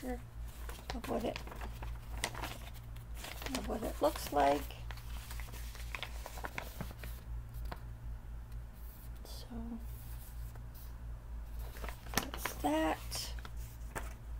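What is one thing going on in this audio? An older woman talks calmly and close by.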